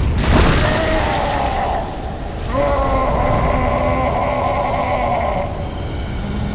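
A huge beast groans deeply.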